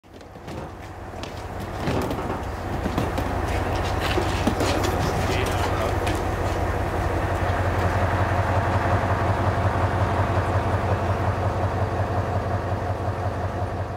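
A crane's diesel engine rumbles steadily close by, growing louder.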